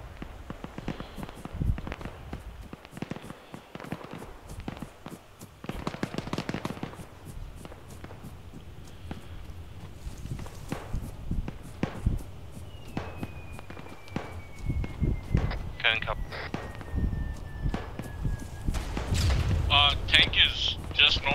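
Footsteps crunch on dry ground and grass.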